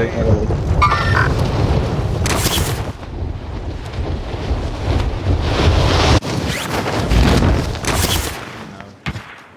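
Wind rushes loudly past during a fast fall through the air.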